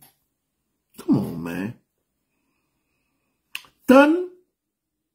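A man speaks clearly and close up, with short pauses, over a microphone.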